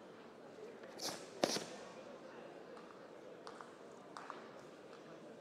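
A karate uniform snaps sharply with quick strikes.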